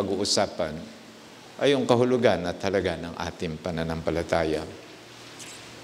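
An elderly man speaks calmly into a microphone in a room with a slight echo.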